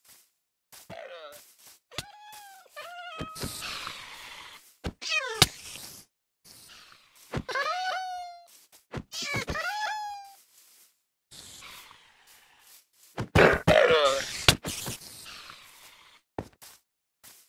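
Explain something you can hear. A sword swings and strikes a creature with sharp hits.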